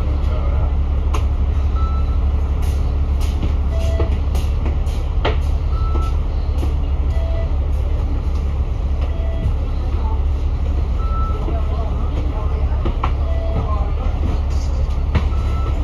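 City traffic hums steadily along a busy street.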